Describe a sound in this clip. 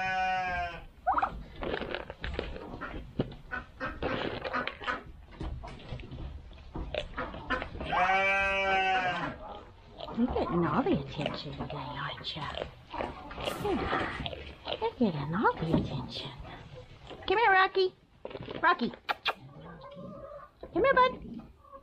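A goat bleats loudly nearby.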